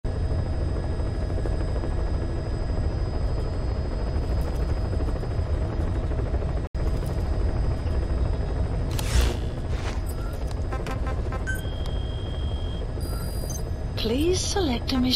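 A helicopter engine drones steadily from inside the cabin.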